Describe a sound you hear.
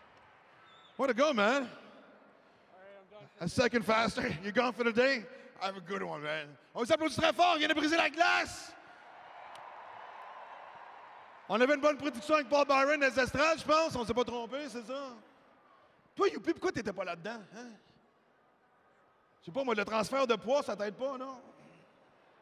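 A man speaks with animation into a microphone, echoing over loudspeakers in a large arena.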